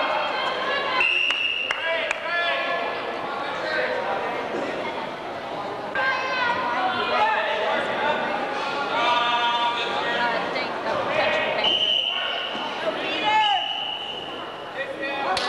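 A referee blows short whistle blasts.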